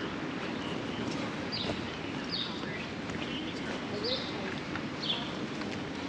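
Footsteps tap on a brick sidewalk as people walk past.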